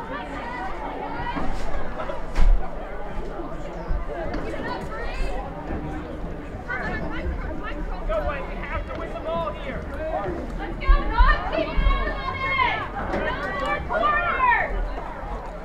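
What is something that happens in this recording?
Young women shout to each other across an open playing field.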